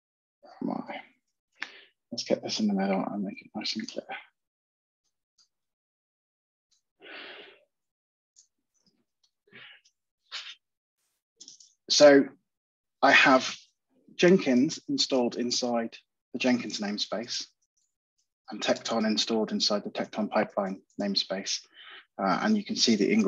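A man talks calmly into a close microphone, as if on an online call.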